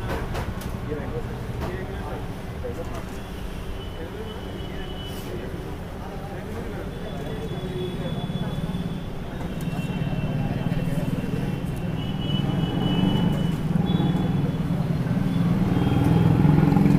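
Busy outdoor street noise rumbles steadily throughout.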